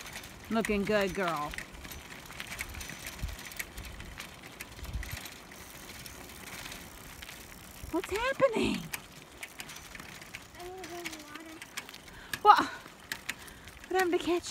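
Tyres of a tricycle roll over a gravel road.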